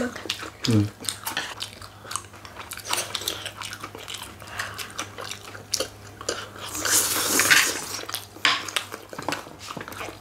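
People chew and crunch fried chicken loudly, close to a microphone.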